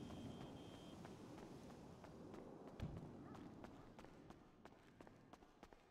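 Footsteps fall on a stone floor.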